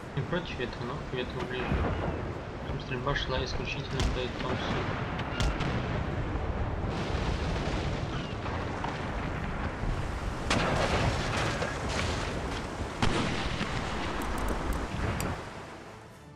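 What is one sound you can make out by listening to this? Waves splash and rush against the hulls of sailing ships at sea.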